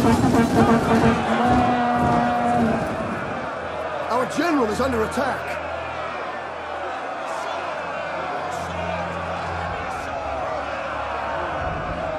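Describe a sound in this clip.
Many men shout and murmur in a crowd.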